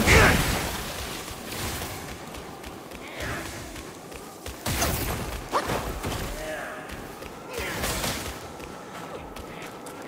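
Footsteps crunch through snow and tap up stone steps.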